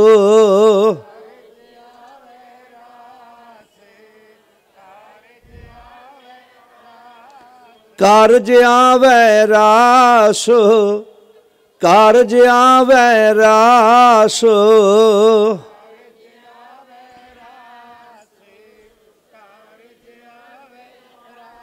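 A crowd of women and men sings along softly.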